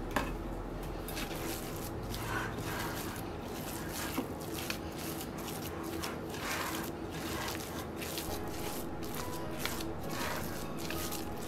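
A spatula scrapes and squelches through thick, sticky dough in a glass bowl.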